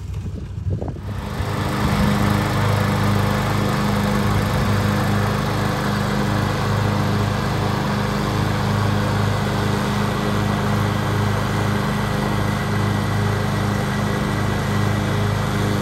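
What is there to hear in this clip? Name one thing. A ride-on lawn mower engine drones steadily close by.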